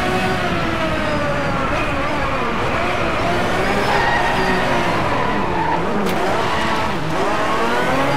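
A racing car engine drops its revs as it downshifts under braking.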